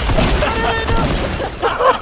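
Rifle gunfire cracks in short bursts.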